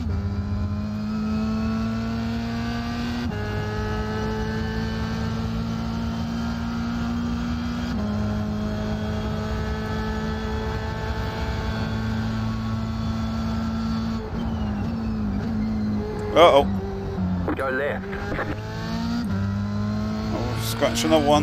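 A racing car engine revs high and shifts up through the gears, then drops as the car brakes.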